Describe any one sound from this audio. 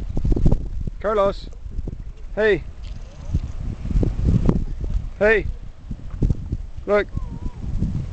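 A young boy speaks and calls out in a high voice close by.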